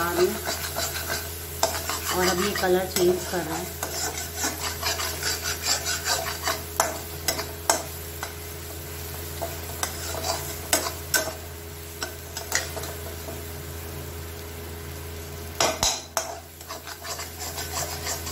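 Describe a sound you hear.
A spatula scrapes and clatters against a metal pan.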